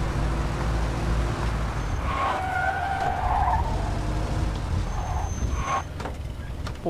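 A car engine rumbles low and steadily.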